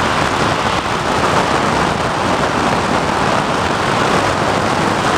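Wind rushes loudly and steadily past.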